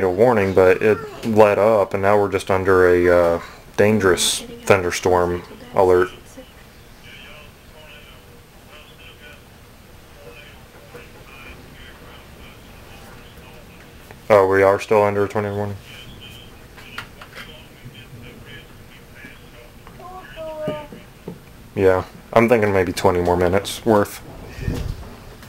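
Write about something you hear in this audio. A young man speaks calmly into a phone, close by, with pauses.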